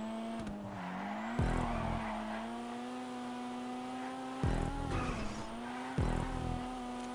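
Tyres screech as a car drifts around bends.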